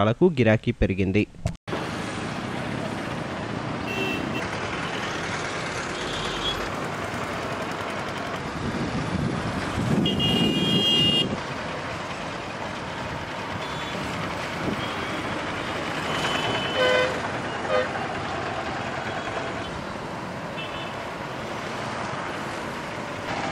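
A motorcycle engine hums as it rides past.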